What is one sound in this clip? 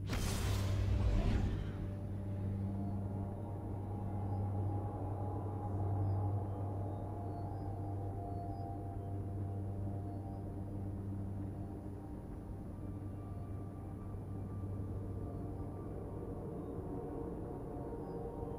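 A deep, steady rushing hum of a spaceship engine fills the air.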